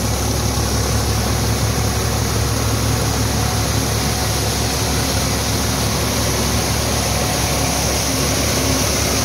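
A threshing machine whirs and rattles loudly as grain is fed into it.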